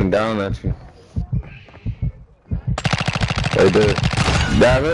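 Gunfire rattles in a quick burst.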